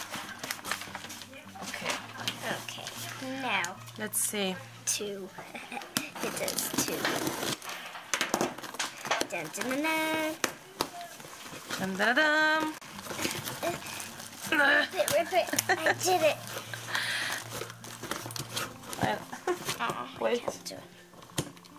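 A cardboard box scrapes and taps as hands handle it.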